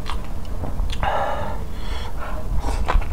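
A young man slurps noodles loudly, close to a microphone.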